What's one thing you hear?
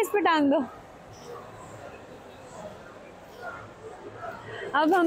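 A young child squeals loudly nearby.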